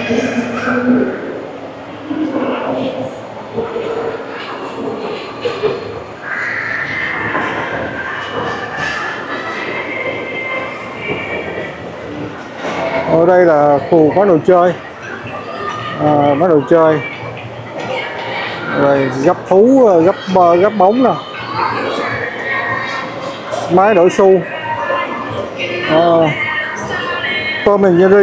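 Many people chatter in a large, echoing hall.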